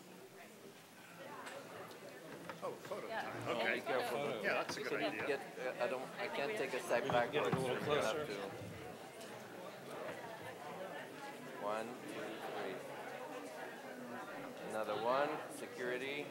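A crowd of men and women chat all around.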